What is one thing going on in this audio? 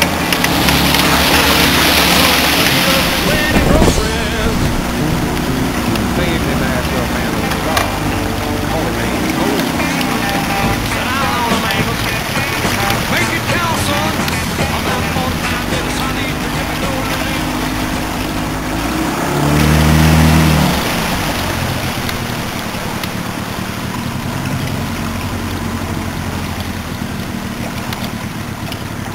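A boat engine drones steadily up close.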